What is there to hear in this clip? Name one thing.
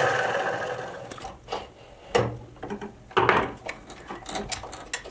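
A tap creaks and clicks as it cuts threads.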